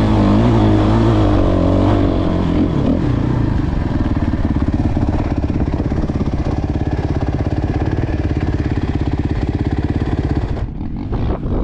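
A motorbike engine roars loudly close by as the bike rides over rough ground.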